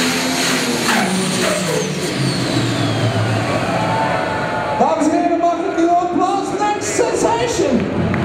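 A tractor's engine winds down in pitch and sputters.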